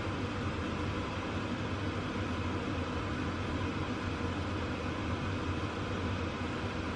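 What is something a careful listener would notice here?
Vegetables sizzle in a frying pan.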